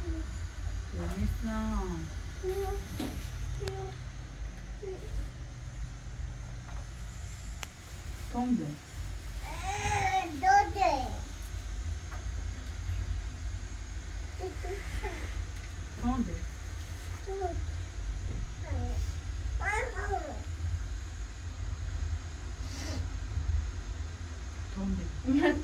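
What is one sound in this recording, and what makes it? An elderly woman talks to small children nearby.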